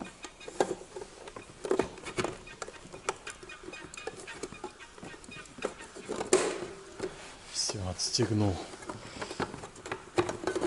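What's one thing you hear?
Plastic parts click and knock together.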